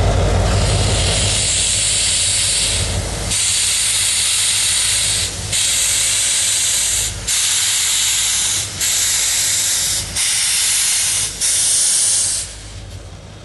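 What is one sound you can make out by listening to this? Steam hisses loudly from a steam locomotive in long, repeated blasts.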